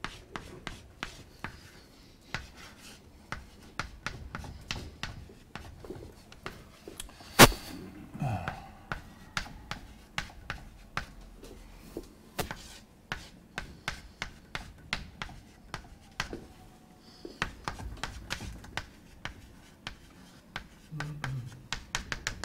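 Chalk taps and scrapes on a blackboard in quick strokes.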